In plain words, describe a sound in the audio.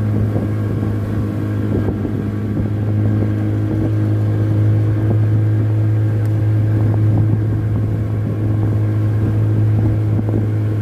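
A boat engine drones steadily at a low pitch.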